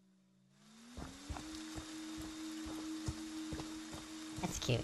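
Heavy footsteps thud steadily on the ground.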